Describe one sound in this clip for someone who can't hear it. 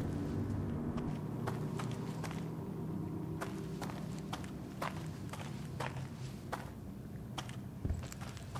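Footsteps tap steadily on a hard floor in an echoing corridor.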